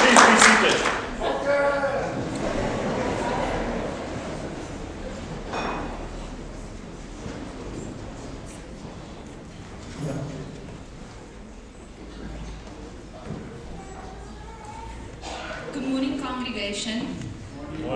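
A man speaks quietly through a microphone.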